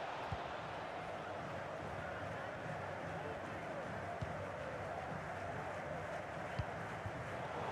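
A football is kicked with dull thuds now and then.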